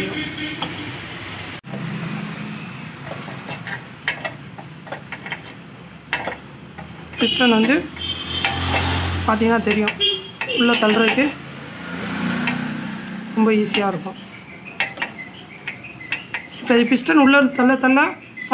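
Metal parts clink and knock.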